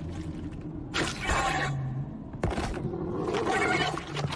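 A monstrous creature lets out harsh, loud growling roars.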